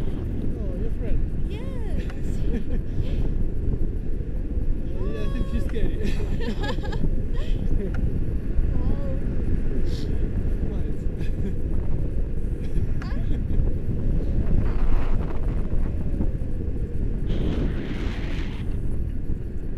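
Strong wind buffets and roars against the microphone.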